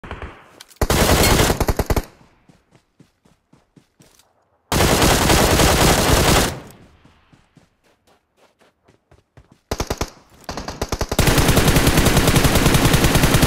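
Rapid bursts of gunfire come loudly from a video game.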